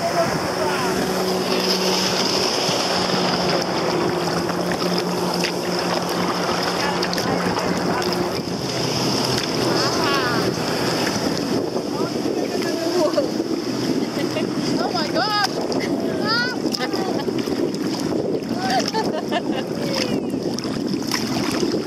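Water laps against a kayak hull.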